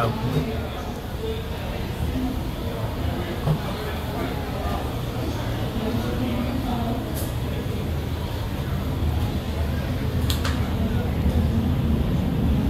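A jet engine rumbles steadily, muffled through glass.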